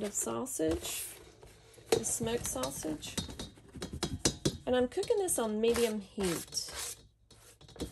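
Food slices tumble into a metal pot with soft thuds.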